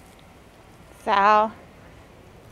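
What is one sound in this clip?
A puppy lets out a short, high yelp.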